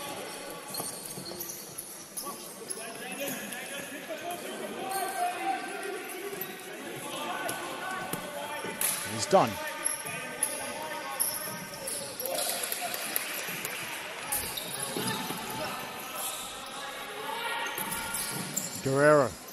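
A crowd of children and adults chatters and cheers in a large echoing hall.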